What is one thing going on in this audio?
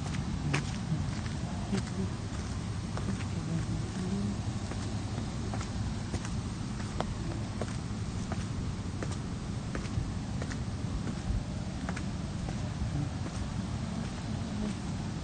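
Raindrops tap irregularly on an umbrella overhead.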